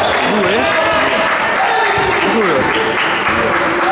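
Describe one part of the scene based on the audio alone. A basketball is dribbled on a hardwood court.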